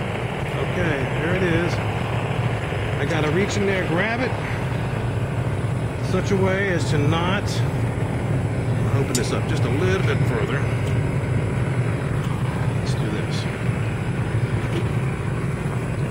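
A gas burner on a raku kiln roars with a low rumble.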